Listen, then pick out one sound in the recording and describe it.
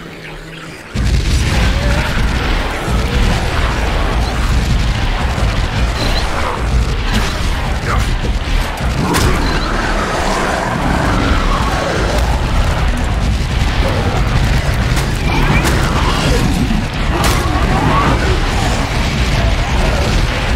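Fiery explosions boom and crackle loudly.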